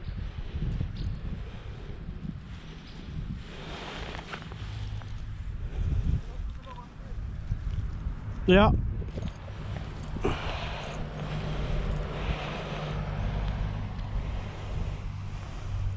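Wind rumbles outdoors against the microphone.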